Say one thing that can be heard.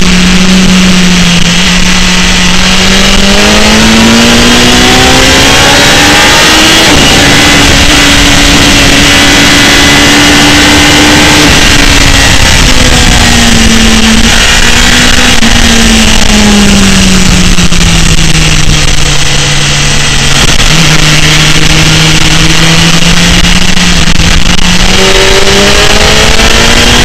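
A motorcycle engine roars close by, its pitch rising and falling with the throttle.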